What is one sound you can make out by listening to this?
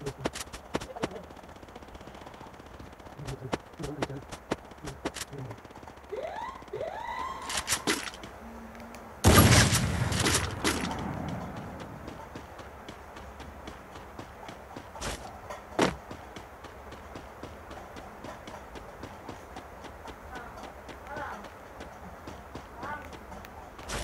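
Footsteps patter quickly on the ground as a game character runs.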